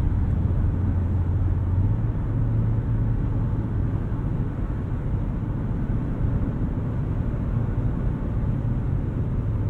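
A car engine hums steadily at speed.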